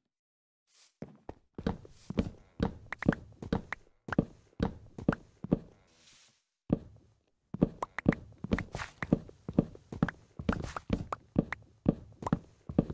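An axe chops wood with quick, repeated knocks.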